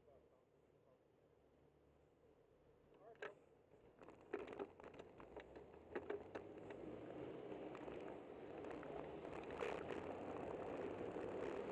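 Wind rushes and buffets past, growing louder as the ride picks up speed.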